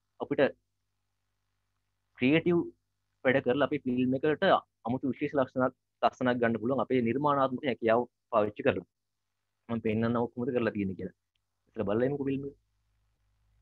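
A young man speaks calmly into a microphone, heard as if through an online call.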